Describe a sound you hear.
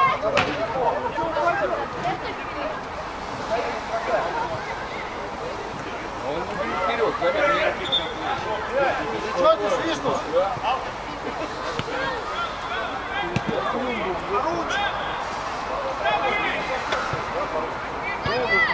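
Men shout to each other across an outdoor pitch, some distance away.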